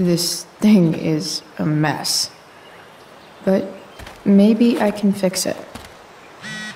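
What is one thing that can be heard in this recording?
A young woman speaks in a low, glum voice.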